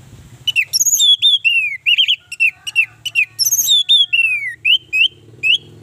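An orange-headed thrush sings close by, a rapid run of sharp whistled and clicking notes.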